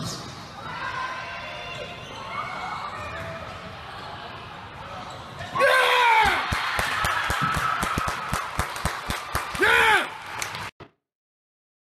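Young women shout and cheer loudly in an echoing gym.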